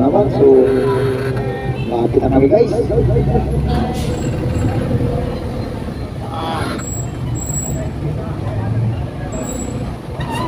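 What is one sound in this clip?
A motorcycle tricycle engine idles close by.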